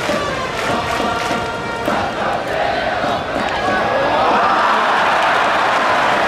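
A large crowd cheers and chants in a stadium, growing louder.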